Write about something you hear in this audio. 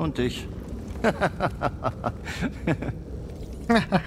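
A man laughs heartily nearby.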